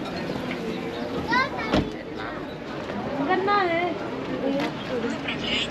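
Men and women chatter faintly in the background outdoors.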